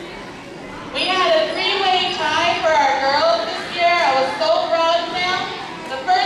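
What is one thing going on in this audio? A woman speaks through a microphone and loudspeaker in a large hall.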